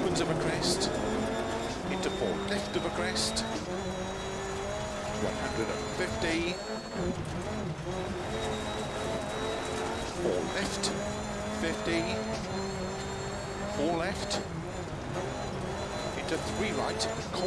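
A rally car engine roars and revs up and down.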